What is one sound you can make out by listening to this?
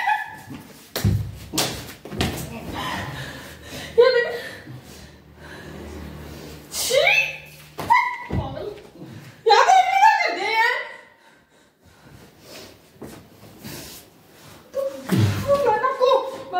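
Hands and feet thump on a mattress.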